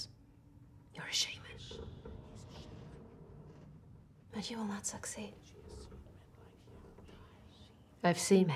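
A woman speaks quietly in a low voice.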